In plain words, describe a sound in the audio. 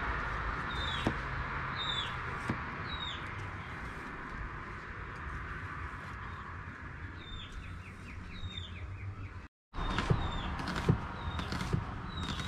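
A knife chops vegetables on a wooden board.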